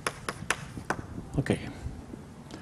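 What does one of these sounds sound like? Chalk taps and scrapes on a board.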